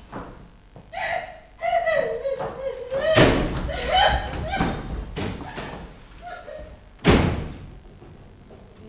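A young woman speaks loudly from across a stage.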